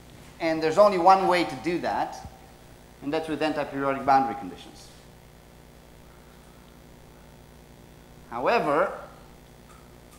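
A man speaks in a lecturing tone in a room, in short bursts.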